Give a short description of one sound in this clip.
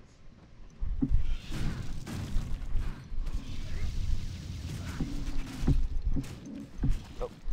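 Low thuds of hits land again and again.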